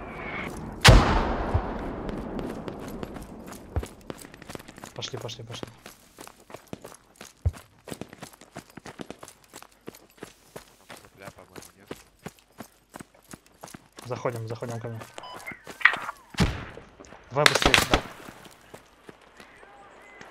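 Footsteps crunch quickly on gravel and dirt.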